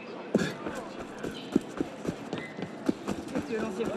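Footsteps run quickly over cobblestones.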